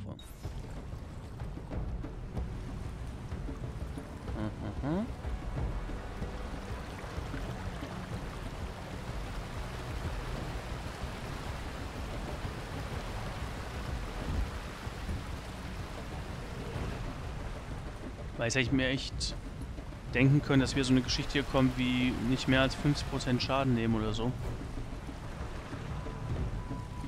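A paddle splashes steadily in flowing water.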